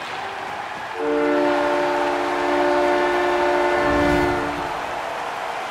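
A loud horn blares steadily for a few seconds.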